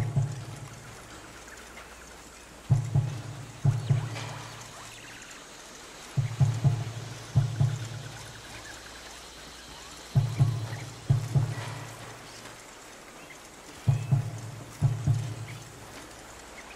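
Waves wash onto a nearby shore.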